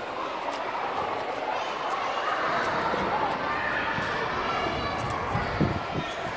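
A small child's footsteps patter on pavement.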